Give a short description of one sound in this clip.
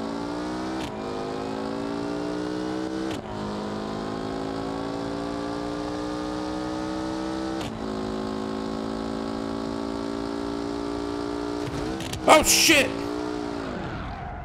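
A car engine roars at high revs, rising in pitch and dropping briefly with each gear change.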